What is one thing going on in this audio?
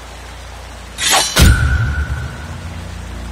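A crackling electric zap bursts out sharply.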